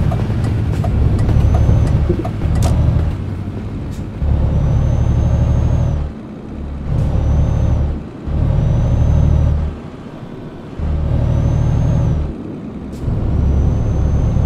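A truck's diesel engine rumbles loudly, swelling and easing in bursts as it accelerates.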